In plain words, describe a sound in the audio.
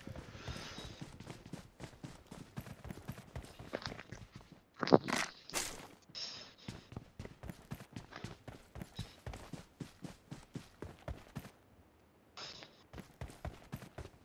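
Quick footsteps thud steadily across the ground.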